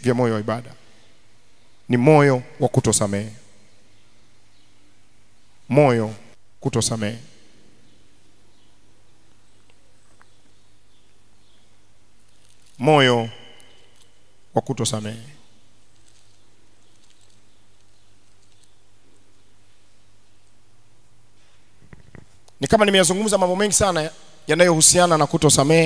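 A man preaches through a microphone in short, forceful bursts with long pauses.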